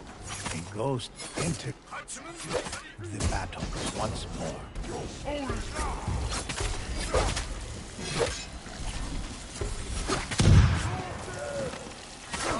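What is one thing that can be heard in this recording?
Swords clash and ring in quick, repeated blows.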